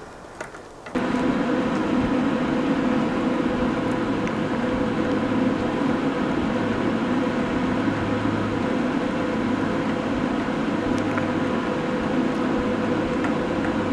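A small fan whirs loudly and steadily.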